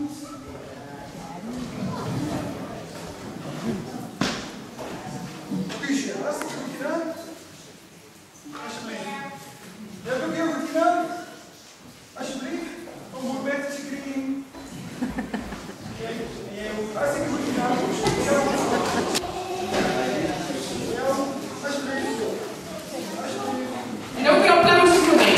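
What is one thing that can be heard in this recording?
A woman speaks through a microphone to a hall.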